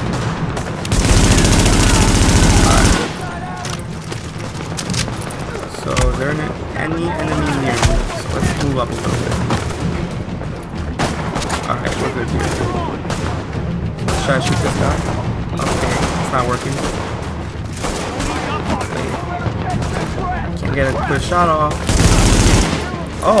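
Gunfire rattles in loud, dense bursts.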